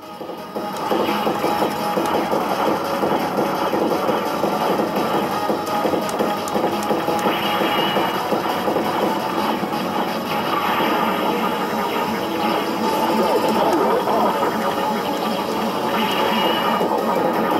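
Fingers tap and click arcade buttons.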